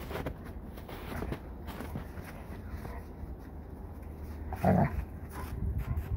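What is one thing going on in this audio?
A dog growls playfully.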